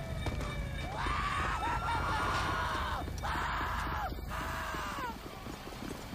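A siren wails nearby, rising and falling.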